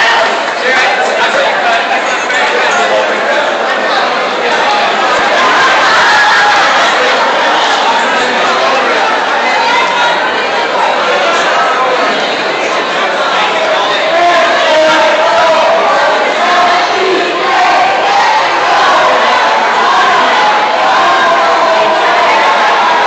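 A crowd of young men and women chatter and cheer in a large echoing hall.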